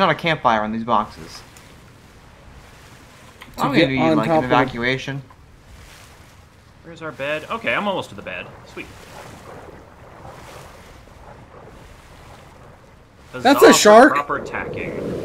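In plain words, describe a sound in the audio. Water sloshes and splashes as a swimmer paddles through waves.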